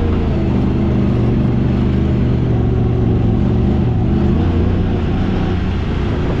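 An off-road vehicle's engine rumbles steadily up close.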